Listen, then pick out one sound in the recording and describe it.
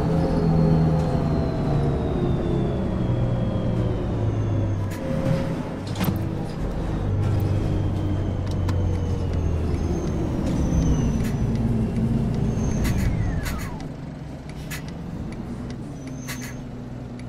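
A bus engine drones steadily and winds down as the bus slows to a stop.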